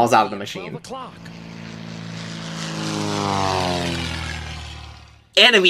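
A small propeller plane drones overhead and its pitch falls as it passes.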